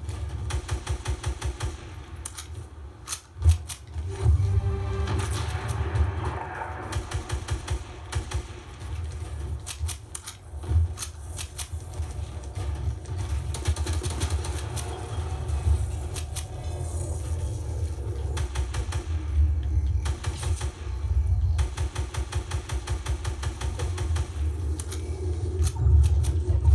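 Video game gunshots and building clatter play in quick bursts through a television speaker.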